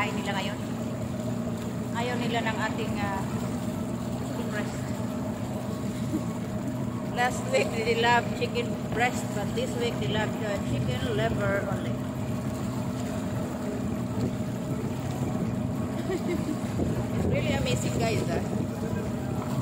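A woman talks close by, calmly and with animation.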